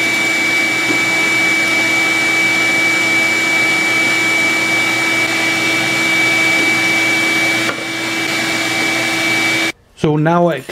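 A drill press runs with a hole saw cutting into a wood block.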